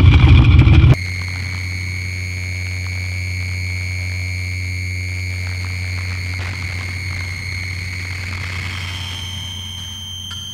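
A low electronic drone hums steadily with high ringing tones.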